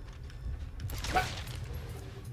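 A rifle fires once with a sharp crack.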